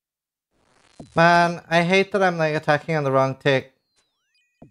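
A young man speaks with animation into a microphone, close by.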